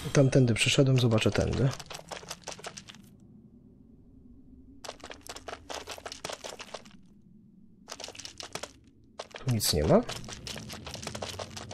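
Soft footsteps patter on stone.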